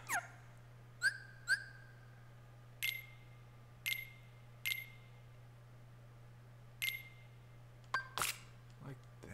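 Short electronic menu beeps sound one after another.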